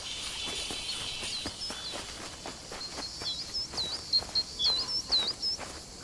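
Light footsteps run over dry ground.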